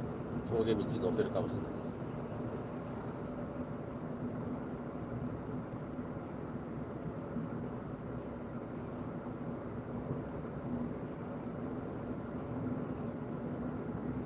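A car's engine hums steadily as it drives along a highway.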